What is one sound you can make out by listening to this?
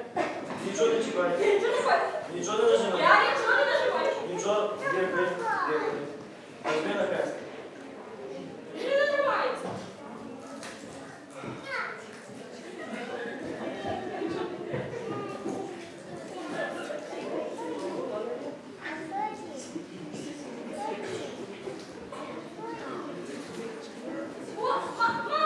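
A young woman talks on a phone, heard through a microphone in an echoing hall.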